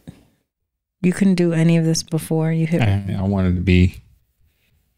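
A woman speaks and laughs softly into a close microphone.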